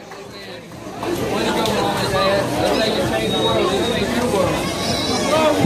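A crowd of men and women cheers and whoops loudly in a room.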